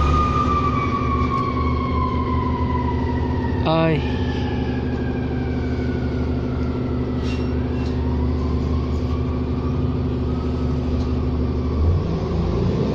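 A bus engine hums low and steady from inside the bus.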